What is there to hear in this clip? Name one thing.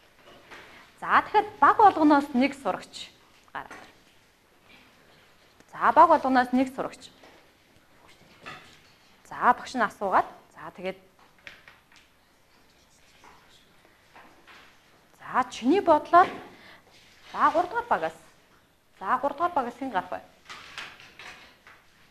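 A woman speaks in short, clear bursts with pauses, as if teaching a class.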